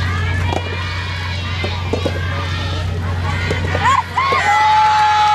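Tennis balls are struck with rackets outdoors, in sharp pops.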